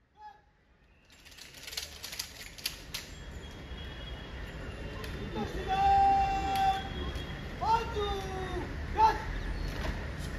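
Rifles clatter as a line of guards handle them in unison.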